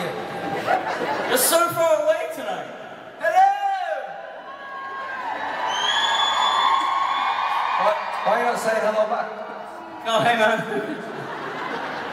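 A young man talks with animation into a microphone over loudspeakers.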